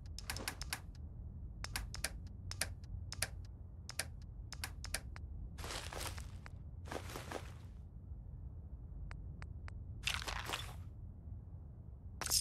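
Short electronic menu clicks tick as a selection moves through a list.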